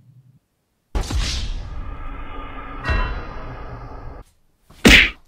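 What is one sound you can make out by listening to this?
A young man groans dramatically.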